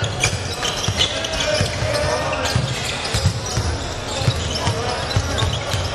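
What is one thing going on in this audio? Sneakers squeak on the court floor.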